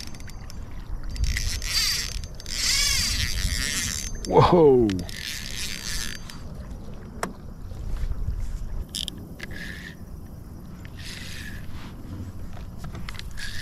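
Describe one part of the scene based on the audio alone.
Water laps against a kayak hull.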